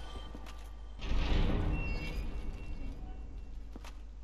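Heavy doors grind and rumble open.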